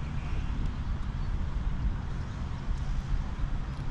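A putter lightly taps a golf ball.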